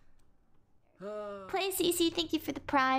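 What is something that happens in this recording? A young woman talks through a microphone.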